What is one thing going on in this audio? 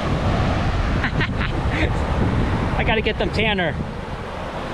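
A middle-aged man speaks cheerfully close to a microphone.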